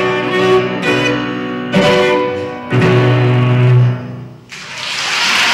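A cello and a piano play a final loud chord in an echoing hall.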